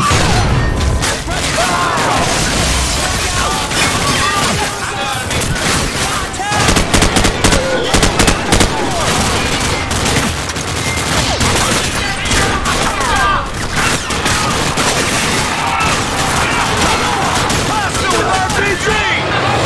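Rapid gunfire bursts loudly and echoes.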